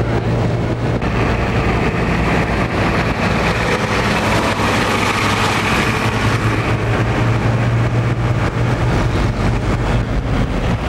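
A box truck drives past.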